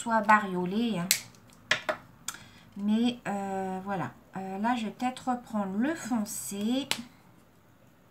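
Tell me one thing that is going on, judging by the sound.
A marker cap clicks on and off.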